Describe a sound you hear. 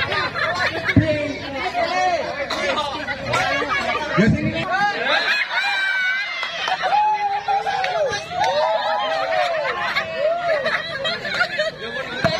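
A crowd of men and women chatter and laugh loudly outdoors.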